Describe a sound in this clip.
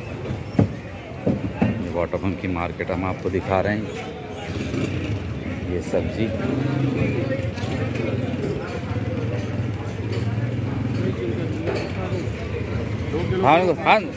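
Voices chatter in a busy outdoor market.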